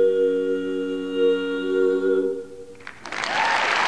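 A group of women sing a chord together in close harmony.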